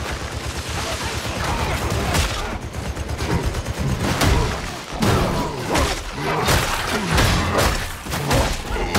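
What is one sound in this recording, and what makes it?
A blade slashes and strikes flesh.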